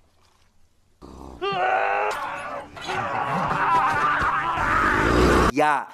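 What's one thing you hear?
A man cries out in alarm close by.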